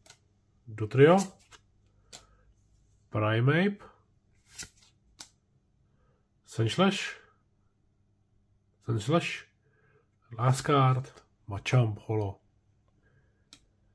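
Playing cards slide and rustle against each other in a person's hands.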